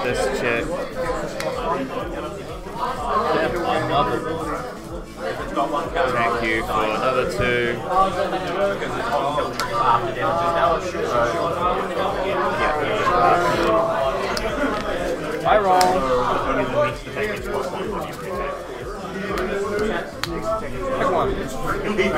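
Playing cards shuffle and slide against each other.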